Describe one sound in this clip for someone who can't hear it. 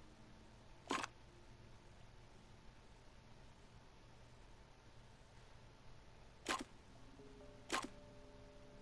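A puzzle tile slides into place with a sharp click.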